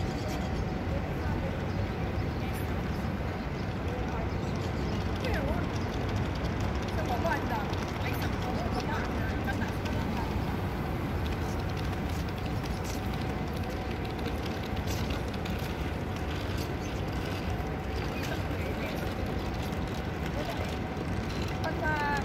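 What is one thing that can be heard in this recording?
Women talk to each other outdoors at a distance.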